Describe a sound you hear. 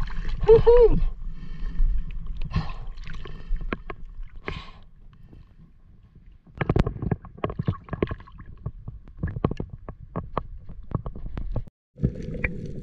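Water laps and splashes close by at the surface.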